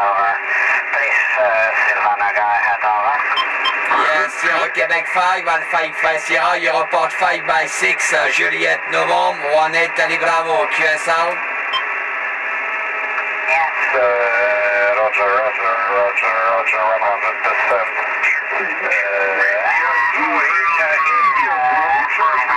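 Radio static hisses and crackles through a loudspeaker.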